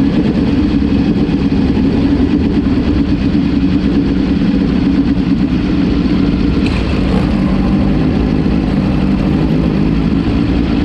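A small racing car engine roars loudly up close.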